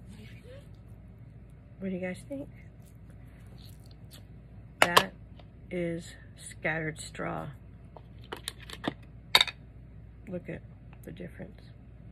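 A plastic ink pad case clatters as it is set down and opened.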